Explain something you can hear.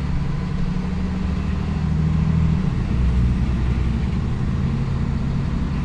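A bus rattles and rumbles over the road.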